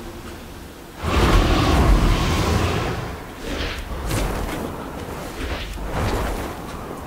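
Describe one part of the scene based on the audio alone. A winged creature's wings flap with a rushing whoosh.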